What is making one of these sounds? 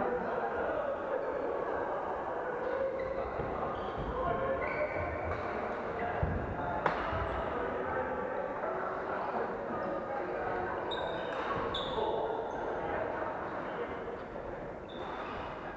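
Sports shoes squeak sharply on a wooden court.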